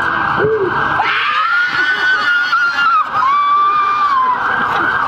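Young women scream loudly in fright nearby.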